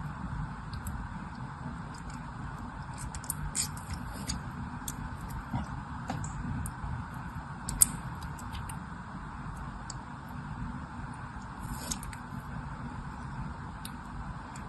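Ice cubes clink and crack against a metal grid.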